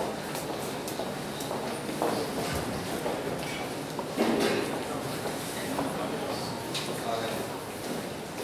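A crowd of young people chatters in the background.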